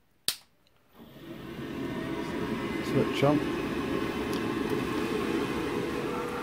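A gas boiler starts up and runs with a steady rushing hum.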